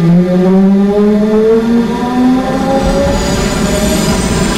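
An electric train motor whines, rising in pitch as the train speeds up.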